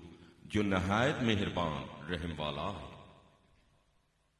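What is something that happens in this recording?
A man sings briefly into a microphone.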